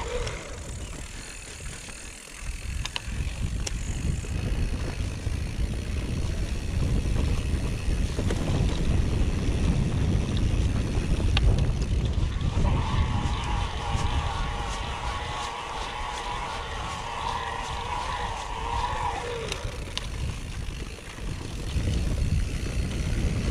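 Bicycle tyres roll and bump over a grassy trail.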